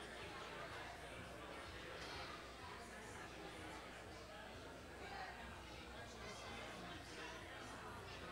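A crowd of men and women chat and murmur all around in an echoing room.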